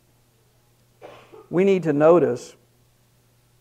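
A middle-aged man speaks briefly into a microphone.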